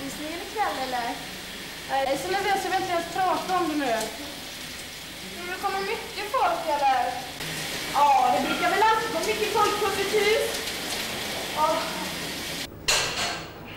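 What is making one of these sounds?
Water sprays steadily from a shower.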